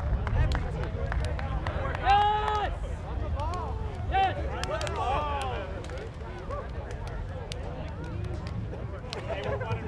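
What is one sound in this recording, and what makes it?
Players slap hands in a row of quick high fives.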